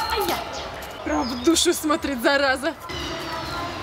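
A young woman speaks excitedly close by.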